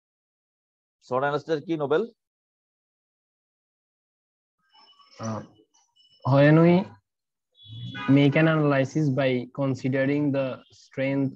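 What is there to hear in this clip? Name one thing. A man lectures calmly through an online call.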